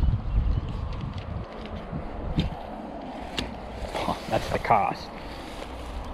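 A fishing reel whirs as its handle is wound.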